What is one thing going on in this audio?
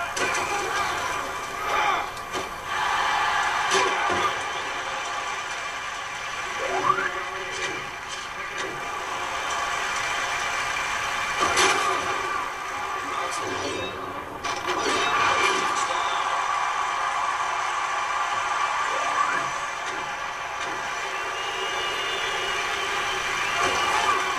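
A stadium crowd roars steadily through a television speaker.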